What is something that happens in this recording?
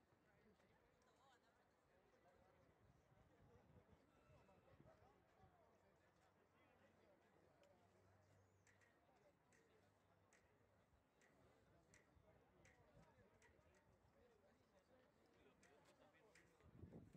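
Rugby players shout and call to one another outdoors, faintly and from a distance.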